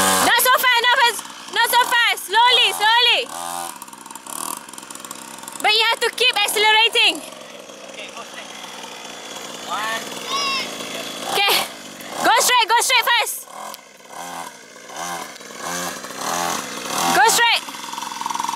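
A small motorbike engine buzzes and revs up and down.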